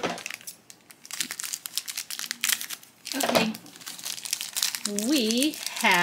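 A plastic wrapper crinkles and rustles as hands tear it open.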